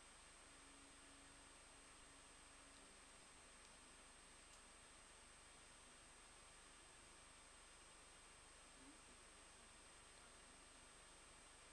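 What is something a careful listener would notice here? Fingers tap softly on a phone's touchscreen.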